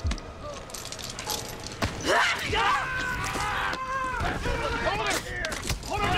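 Men grunt as they struggle.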